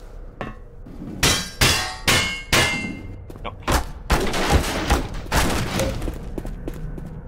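Wooden crates crack and splinter under heavy blows.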